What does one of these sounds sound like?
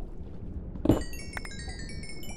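A bright chime tinkles repeatedly in quick, rising notes.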